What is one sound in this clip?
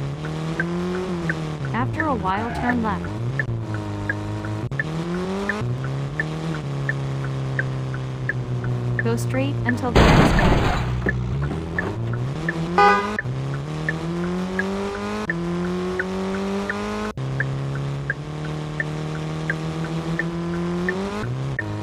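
A car engine revs up and down through the gears at speed.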